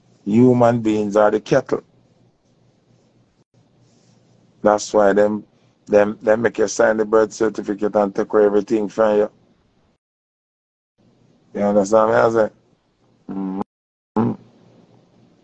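A man talks casually close to the microphone, in bursts with pauses.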